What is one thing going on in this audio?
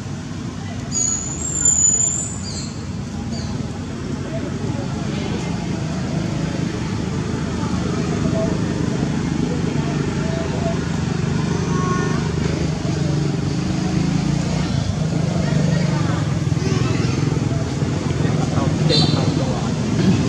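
An infant macaque squeaks in high, thin cries.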